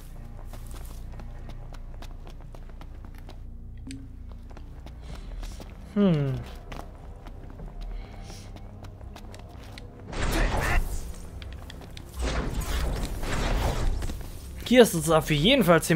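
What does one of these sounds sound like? Footsteps patter quickly over rocky ground.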